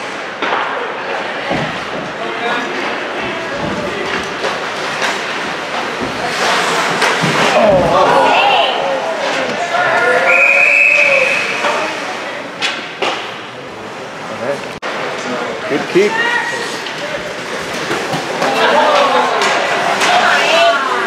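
Ice hockey skates scrape and carve across the ice in an echoing rink.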